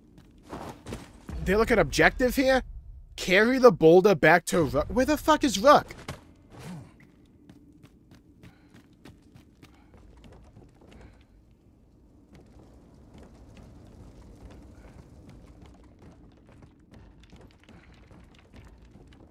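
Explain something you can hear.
Footsteps thud on ground and wooden planks.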